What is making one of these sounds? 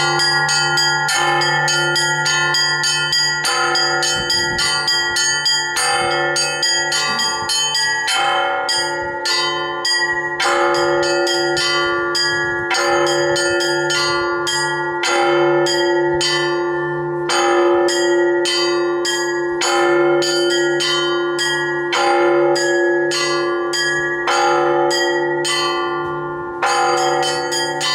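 Large church bells ring loudly and continuously in a steady, repeating peal.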